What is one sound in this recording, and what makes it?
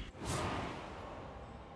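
A magical whoosh bursts out as a spell is cast.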